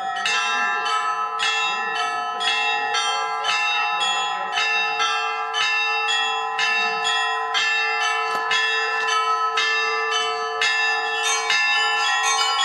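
Church bells ring out in a quick, steady peal.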